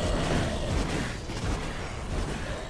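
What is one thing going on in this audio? Magic spells crackle and burst in a fantasy game battle.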